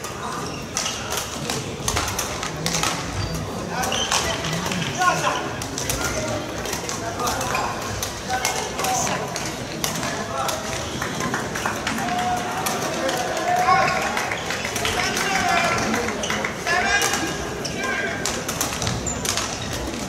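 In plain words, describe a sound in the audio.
Rackets strike a shuttlecock in a quick rally.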